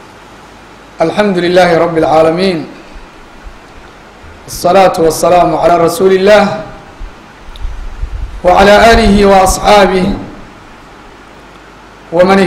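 A man speaks into a microphone in loud bursts with pauses between phrases, as if preaching.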